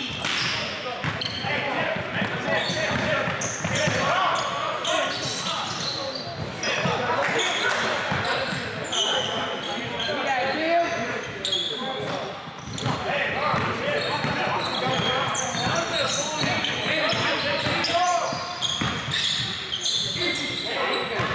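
Young men call out in a large echoing gym.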